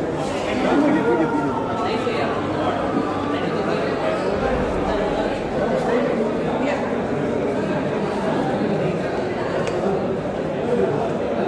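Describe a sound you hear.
Several adults chatter loudly nearby, in an echoing indoor space.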